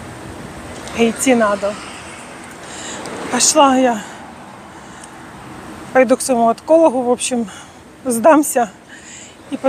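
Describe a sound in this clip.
A middle-aged woman talks with animation close to the microphone.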